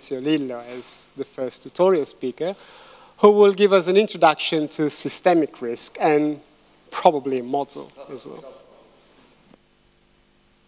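A woman speaks to an audience through a microphone in a large echoing hall.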